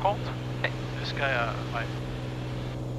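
A man speaks calmly over a headset intercom.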